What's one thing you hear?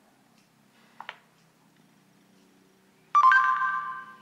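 A phone gives short electronic beeps and chimes.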